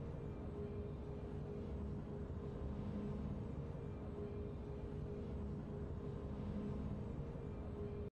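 Slow, triumphant game music plays steadily.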